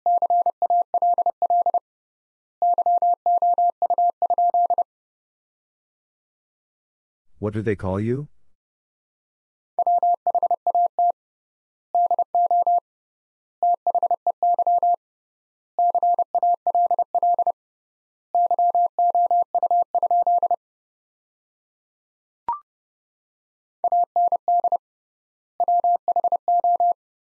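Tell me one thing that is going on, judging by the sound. A Morse code key taps out quick, steady beeps.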